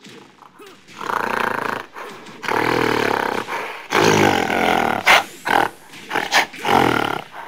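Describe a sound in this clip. Fighters grunt and shout as they strike.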